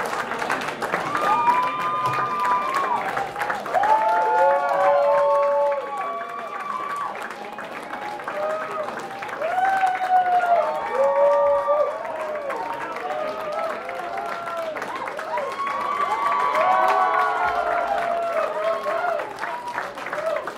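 A man sings into a microphone over a loud live band.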